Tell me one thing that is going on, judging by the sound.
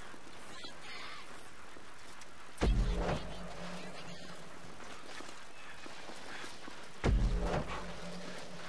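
Bicycle tyres roll over dry dirt and grass.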